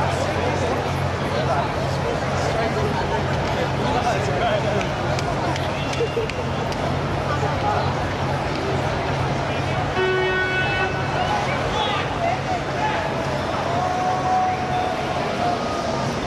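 A crowd of young people chatters nearby outdoors.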